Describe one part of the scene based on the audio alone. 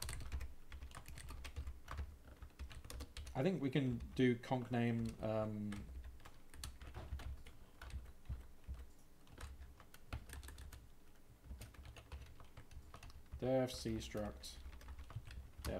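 Keyboard keys click quickly in short runs.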